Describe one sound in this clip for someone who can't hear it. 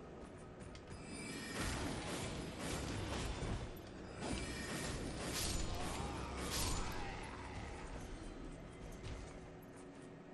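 Sword slashes swish and clash in a fight.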